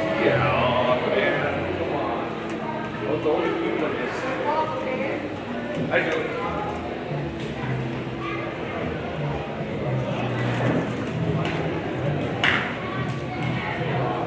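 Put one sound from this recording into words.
Spectators chatter and murmur in a large echoing hall.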